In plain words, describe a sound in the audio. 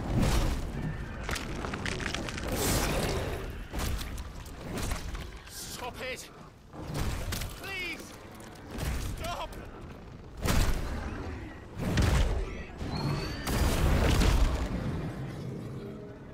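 A huge creature roars deeply.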